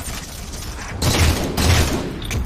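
Gunfire and explosions from a video game boom loudly.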